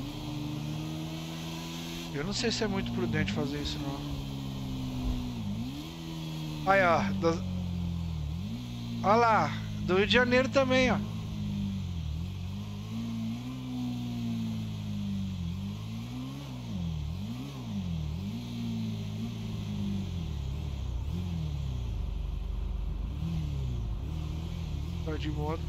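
A motorcycle engine hums steadily and rises and falls in pitch as it speeds along.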